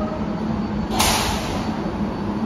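Train brakes hiss sharply.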